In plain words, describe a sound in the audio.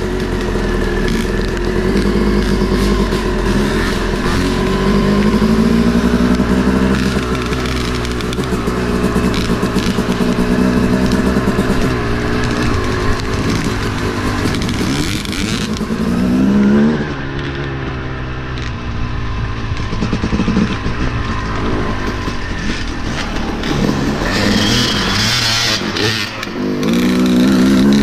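A two-stroke dirt bike revs as it rides off and back.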